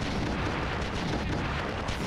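A fireball bursts with a loud blast.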